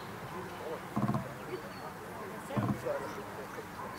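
A man calls out short commands to a dog outdoors, at a distance.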